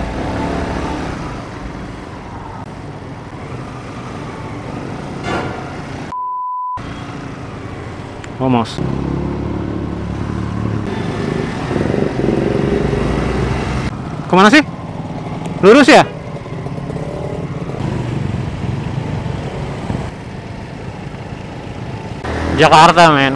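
A motorcycle engine hums and revs steadily up close.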